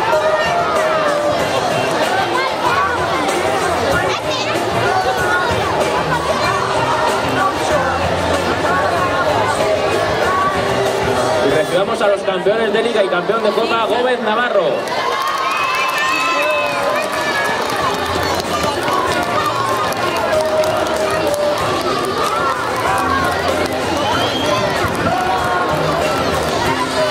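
A crowd of adults and children chatters outdoors.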